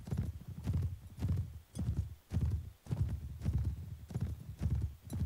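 Horse hooves thud on grass in a steady, fast rhythm.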